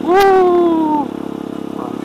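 A motorcycle engine revs loudly close by, then its pitch drops as it eases off.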